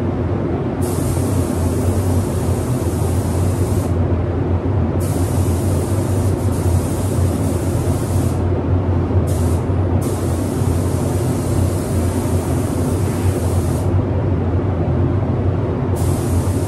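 A spray gun hisses in bursts, starting and stopping.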